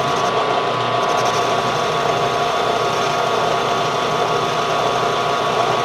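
A cutting tool scrapes and whirs against turning metal.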